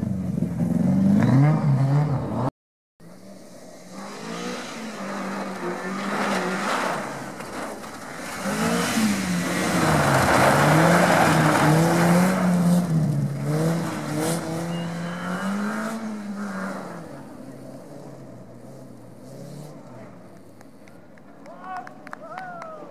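A rally car engine revs hard and roars.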